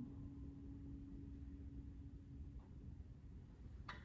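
A guitar chord rings out and slowly fades.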